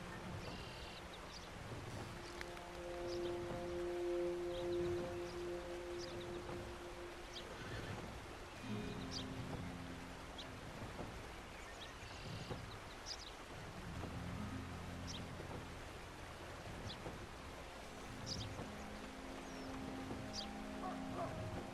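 Water of a stream flows over rocks.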